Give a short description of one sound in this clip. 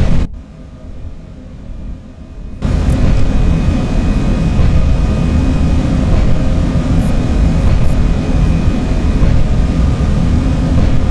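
An electric train rumbles steadily along the rails at speed.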